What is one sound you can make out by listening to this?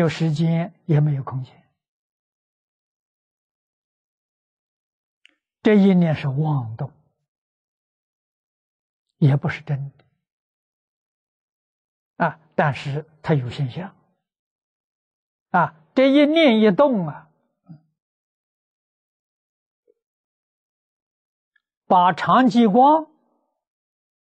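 An elderly man speaks calmly through a clip-on microphone, with long pauses.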